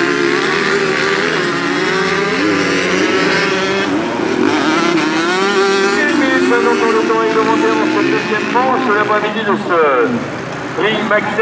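Dirt bike engines whine and rev loudly, rising and falling in pitch.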